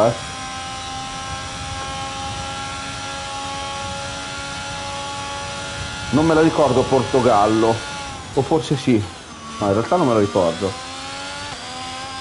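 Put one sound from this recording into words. A racing car engine whines at a high, steady pitch, then drops as the car slows.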